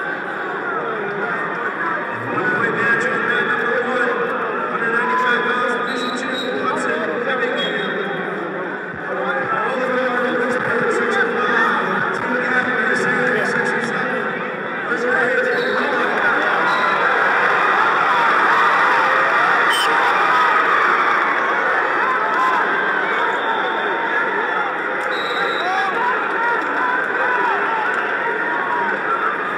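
A large crowd cheers and chatters in a big echoing arena.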